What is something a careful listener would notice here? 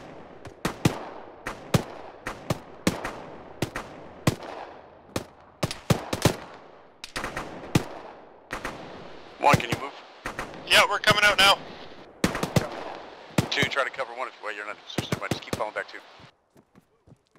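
Gunshots crack repeatedly and echo outdoors.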